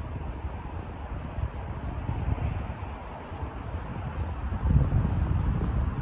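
Wind blows gustily outdoors.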